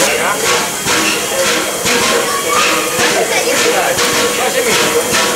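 A steam locomotive chuffs loudly and rhythmically as it rolls slowly into a station.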